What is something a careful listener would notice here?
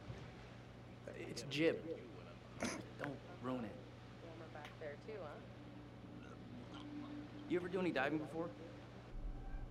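A young man answers quietly.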